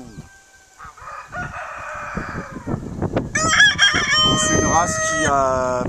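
A rooster crows loudly.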